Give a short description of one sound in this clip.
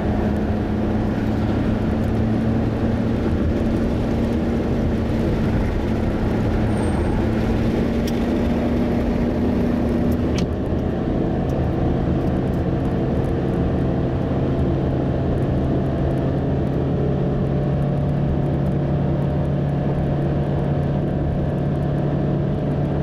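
A car engine hums steadily from inside the car, changing pitch as it shifts gears.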